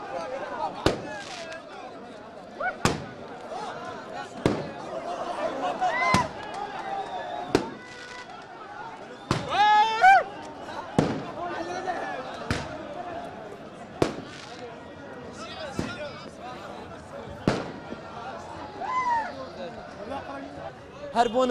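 Firecrackers bang sharply again and again in the open air.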